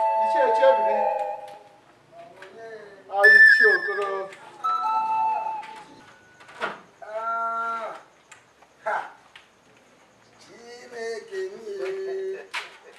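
A woman calls out loudly nearby.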